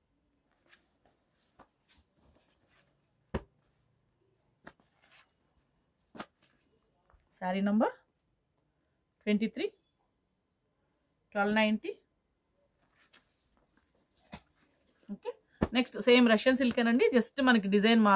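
Cloth rustles softly as it is folded and spread out by hand.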